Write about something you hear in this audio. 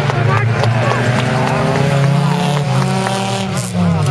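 Tyres skid and crunch on gravel.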